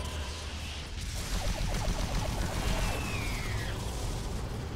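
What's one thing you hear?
A gun fires with a burst of energy blasts.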